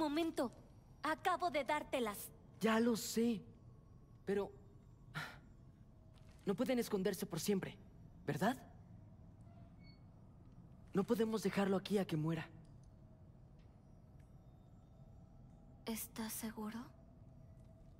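A young woman answers with animation, close by.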